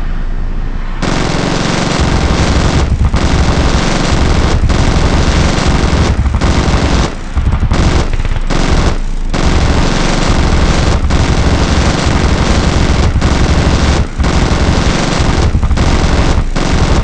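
Machine guns fire in long rapid bursts.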